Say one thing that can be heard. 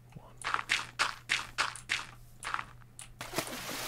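Blocks are placed with quick, soft thuds.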